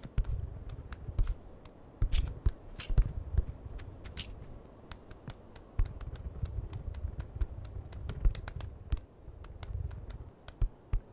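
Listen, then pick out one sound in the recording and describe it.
A goose's feet patter quickly on pavement.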